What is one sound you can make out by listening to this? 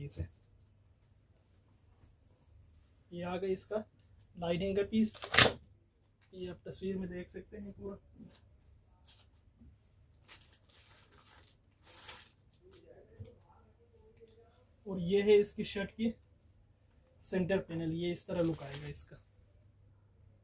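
Fabric rustles softly as it is unfolded and spread out.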